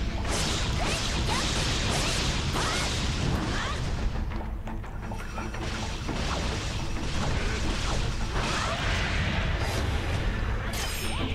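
Blades clash and slash in quick strikes.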